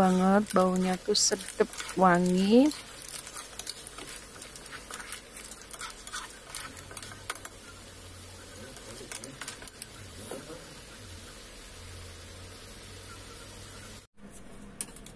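Seafood sizzles in a hot pan.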